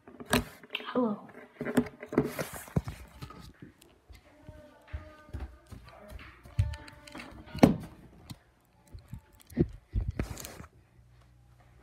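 Loud bumps and rustles come from handling the phone.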